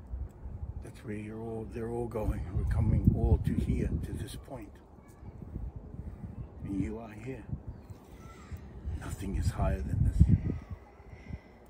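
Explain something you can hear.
A man speaks calmly and earnestly nearby.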